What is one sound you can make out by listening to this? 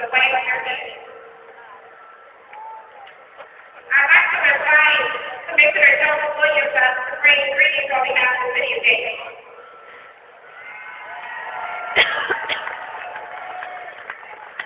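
A woman sings through distant loudspeakers, echoing across the open air.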